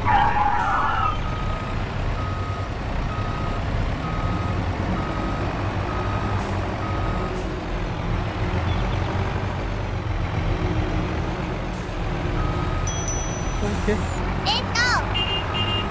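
A small vehicle's engine rumbles steadily as it drives along.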